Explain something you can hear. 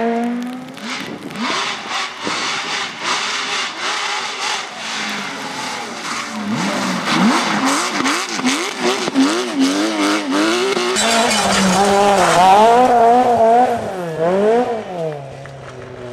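A rally car engine roars, revving up and down sharply between gear changes.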